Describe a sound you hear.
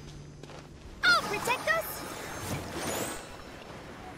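Bright magical chimes sparkle and ring out.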